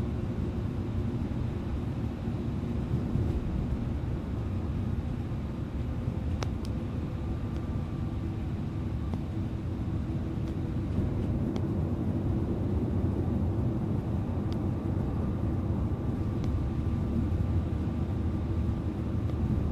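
A bus engine hums steadily from inside the cabin.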